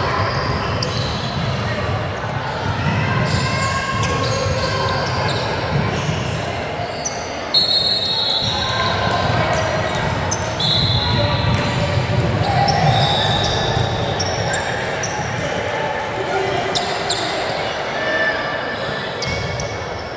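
Voices of players and onlookers murmur and call out in a large echoing gym.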